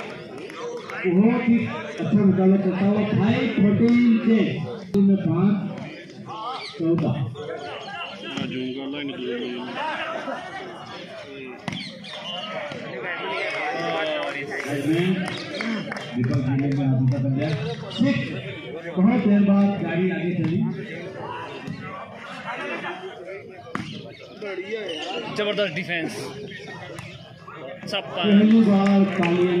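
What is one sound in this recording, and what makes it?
A crowd chatters and cheers outdoors.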